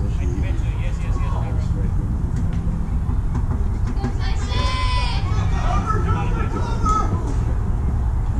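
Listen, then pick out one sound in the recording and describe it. Voices of players call out across an open field.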